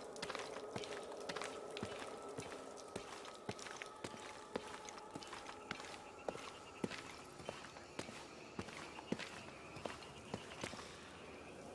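Footsteps tread steadily down stone steps.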